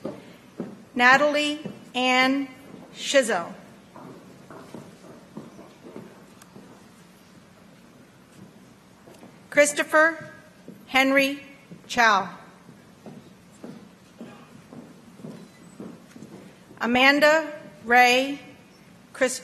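A woman reads out names through a loudspeaker in an echoing hall.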